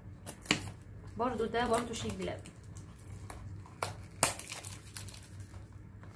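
A small plastic case clicks and taps in someone's hands.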